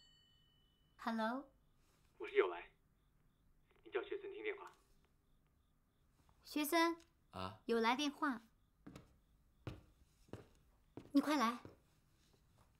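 A young woman speaks into a telephone close by, calling out.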